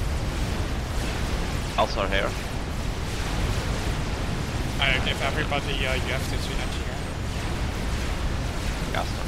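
Gunfire and explosions rumble in a busy battle.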